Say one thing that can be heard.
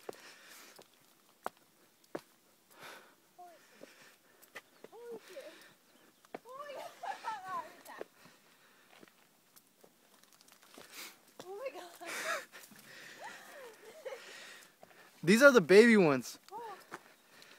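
Footsteps scuff on a rough dirt and stone trail.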